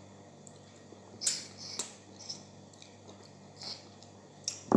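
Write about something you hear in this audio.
A woman bites and crunches crispy food up close.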